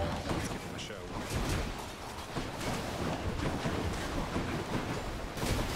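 Game combat sounds whoosh and clash in quick bursts.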